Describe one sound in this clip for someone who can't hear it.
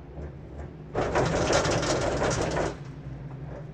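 A gondola cabin clatters loudly over a lift tower's rollers.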